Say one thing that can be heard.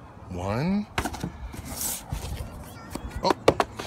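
A cardboard box rustles and taps in a man's hand.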